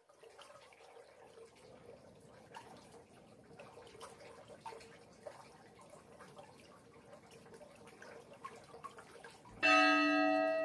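Water trickles and drips softly into a pool.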